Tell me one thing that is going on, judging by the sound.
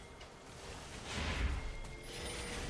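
Game spell effects burst and crackle.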